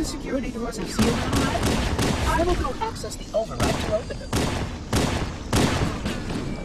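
A shotgun fires loud booming shots.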